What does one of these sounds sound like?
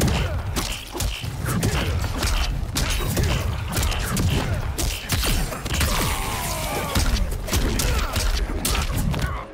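Punches and kicks land with heavy thuds in quick succession.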